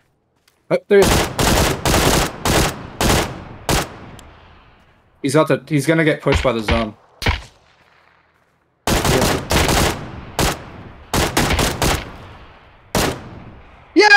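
Rifle shots crack in rapid bursts, echoing outdoors.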